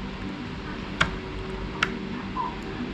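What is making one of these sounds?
Small plastic parts click as they are fitted together.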